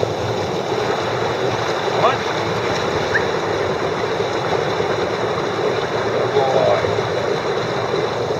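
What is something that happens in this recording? A large dog splashes through water.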